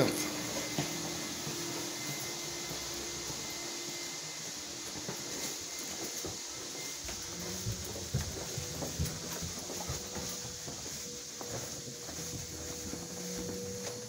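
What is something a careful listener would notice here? A carpet cleaning machine hums steadily with a loud rushing hiss.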